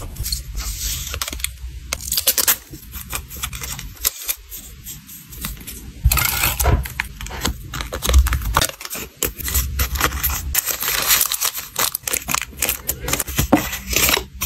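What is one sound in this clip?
Plastic card sleeves rustle and click as hands handle them.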